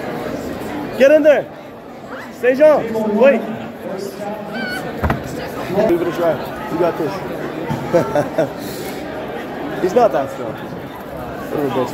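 A young man shouts loudly nearby.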